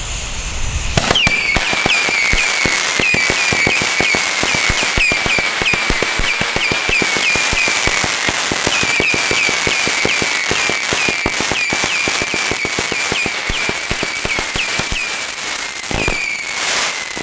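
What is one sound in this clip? Firework shots whistle upward and burst with loud bangs outdoors.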